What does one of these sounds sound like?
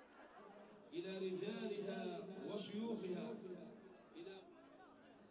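A crowd chants loudly outdoors.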